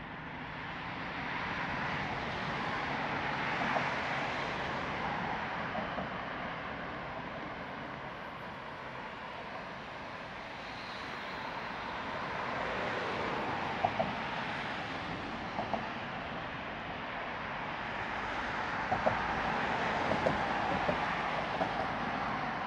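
Traffic rushes past on a nearby road, swelling and fading as cars go by.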